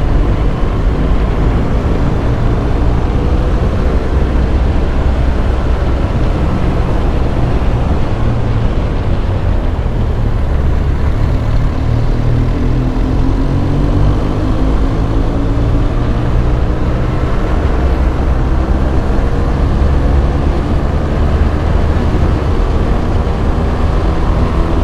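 A motorcycle engine hums steadily and rises and falls in pitch as the bike rides along.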